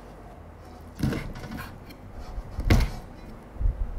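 A knife chops on a wooden cutting board.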